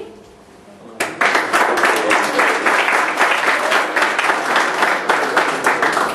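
A crowd of people claps and applauds loudly.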